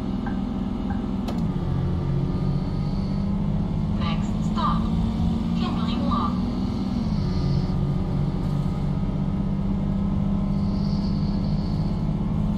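A bus engine hums steadily and shifts gears as the bus drives.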